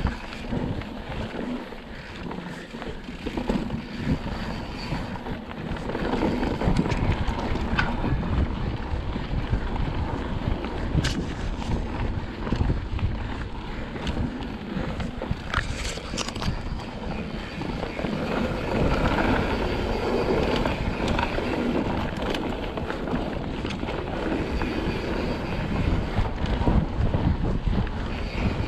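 Wind rushes against the rider.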